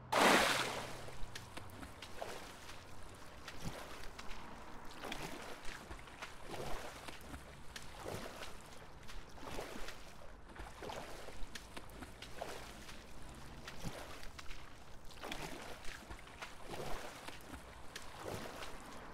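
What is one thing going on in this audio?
Swimming strokes splash through water.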